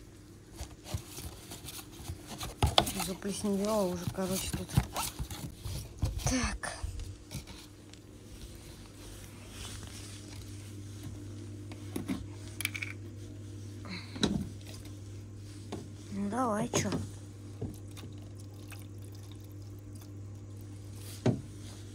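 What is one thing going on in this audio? A plastic bottle crinkles and crackles as it is handled.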